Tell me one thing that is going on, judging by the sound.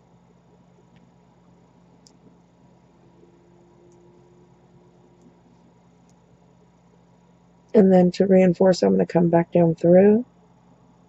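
Small beads click softly against each other as they are threaded.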